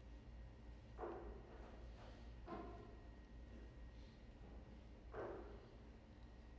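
An elderly man murmurs quietly at a distance.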